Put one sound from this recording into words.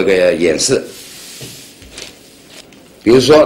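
Paper rustles as it is moved.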